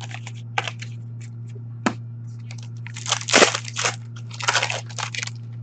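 Plastic card sleeves rustle and crinkle as hands handle them.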